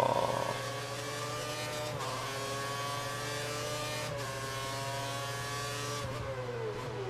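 A racing car engine screams at high revs, rising in pitch as gears shift up.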